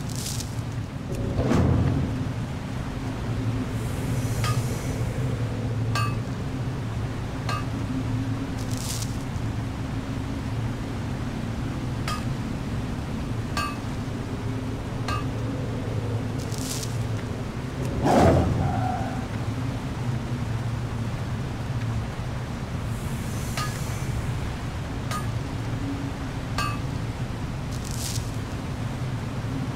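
Footsteps tread at an even pace.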